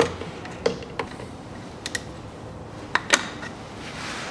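Plastic parts knock and tap together as a hand handles them.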